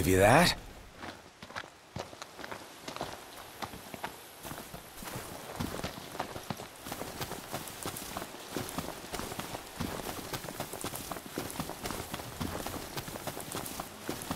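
Footsteps rustle through tall grass and bushes.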